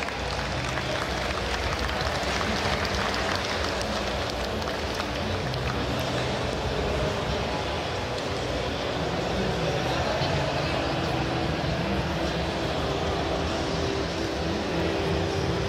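Music plays loudly through loudspeakers.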